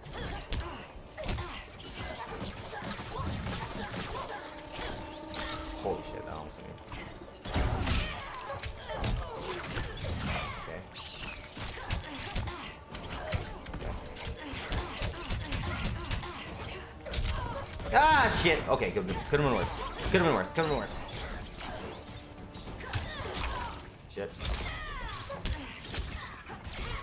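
Punches and kicks thud and crack in a fast fight.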